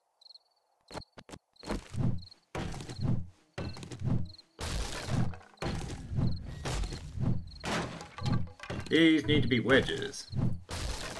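A stone axe chops wood with heavy thuds.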